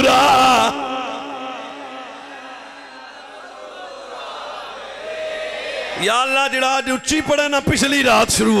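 A man sings a melodic chant loudly into a microphone, with echoing reverb.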